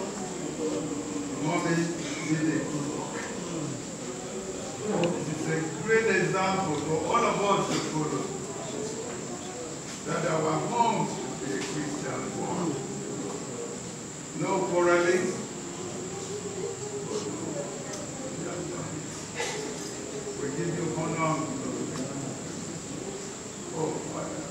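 A man speaks solemnly into a microphone over loudspeakers in an echoing hall.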